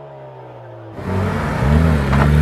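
A car engine roars close by.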